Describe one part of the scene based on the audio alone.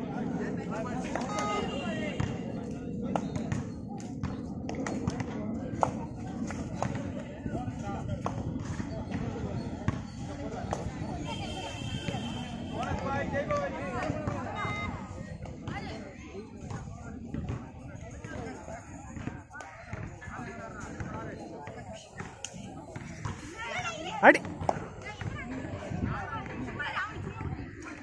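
Young male players call out to each other during play.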